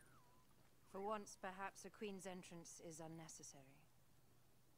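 A young woman speaks softly and calmly.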